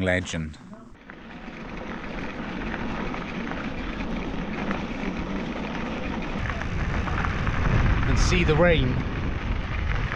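Bicycle tyres crunch on a gravel road.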